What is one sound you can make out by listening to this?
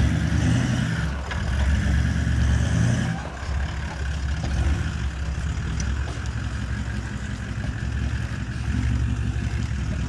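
A trailer rattles and clanks as it is towed over bumps.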